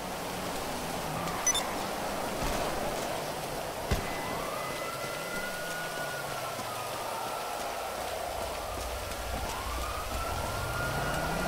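Footsteps run quickly on pavement.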